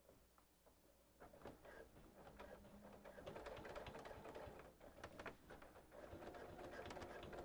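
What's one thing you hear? A sewing machine whirs and stitches rapidly.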